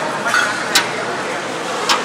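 Water pours from a metal jug into a metal bowl.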